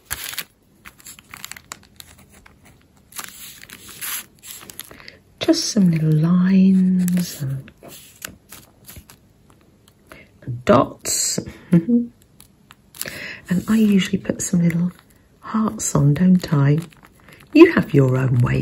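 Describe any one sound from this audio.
A felt-tip pen scratches softly across paper.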